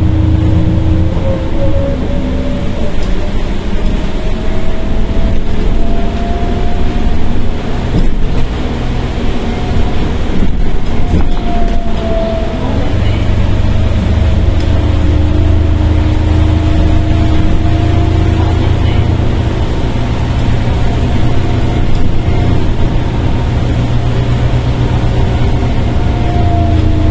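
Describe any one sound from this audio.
The inside of a bus rattles and creaks over the road.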